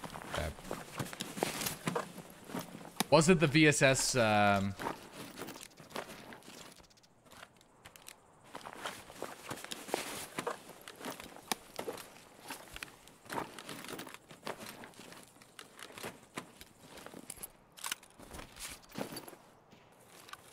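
Inventory items click and clatter as they are moved.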